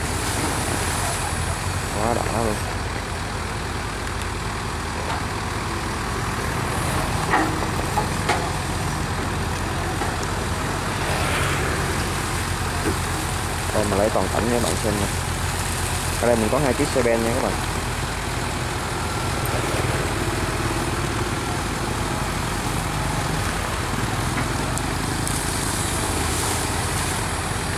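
Water splashes and churns as a digger bucket plunges in.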